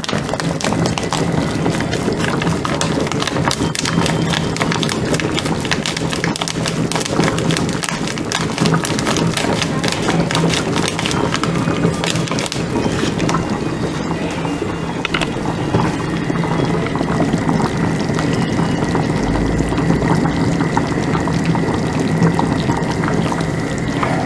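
A pot of soup bubbles and simmers steadily.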